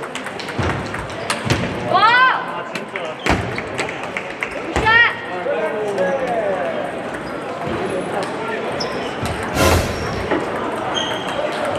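Many people chatter in the background.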